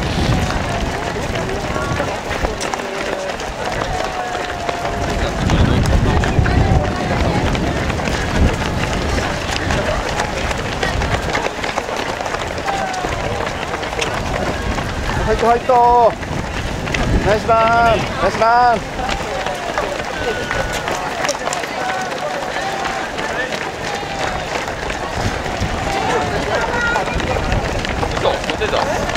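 Many runners' footsteps patter on pavement.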